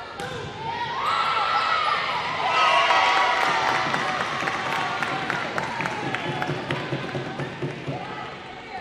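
Young women players shout and call out to each other.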